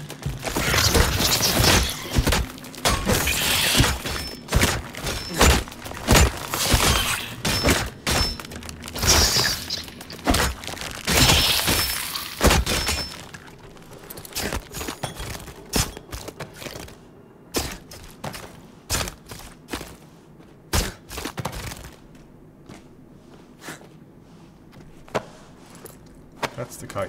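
Blows of a weapon strike a creature with sharp thuds.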